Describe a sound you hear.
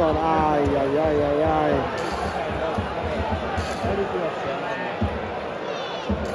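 A large stadium crowd murmurs and cheers outdoors.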